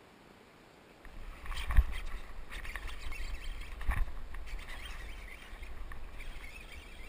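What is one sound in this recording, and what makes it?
Wind gusts outdoors, buffeting the microphone.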